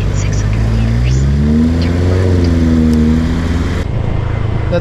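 A motorcycle engine revs up, rising in pitch as the bike speeds up.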